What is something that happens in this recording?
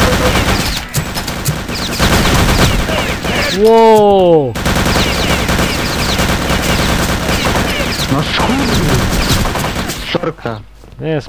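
Submachine guns fire in rapid bursts.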